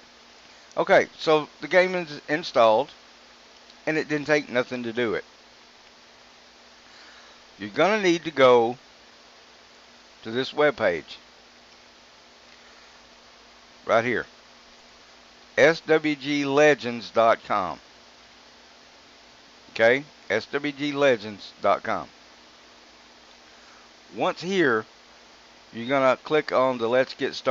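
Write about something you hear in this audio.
A middle-aged man talks calmly into a close microphone, in bursts with pauses.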